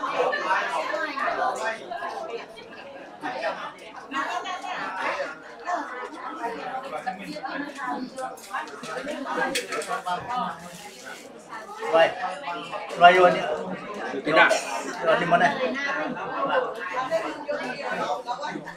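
Several men and women talk and murmur together in a crowded room.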